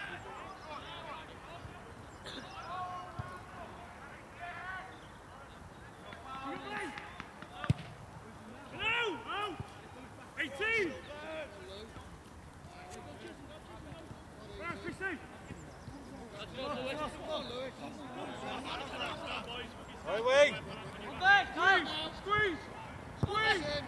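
Young men shout to each other across an open field, some way off.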